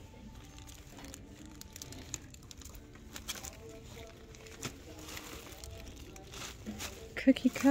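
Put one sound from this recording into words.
Plastic wrapping crinkles as packages are handled.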